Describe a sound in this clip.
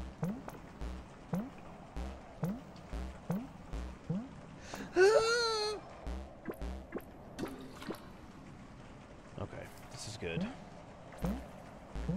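Short springy blips sound in a quick, uneven rhythm.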